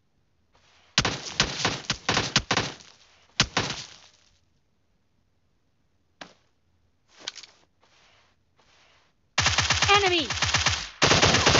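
An automatic rifle fires loud rapid bursts close by.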